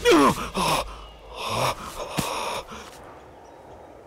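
A man cries out and gasps in pain nearby.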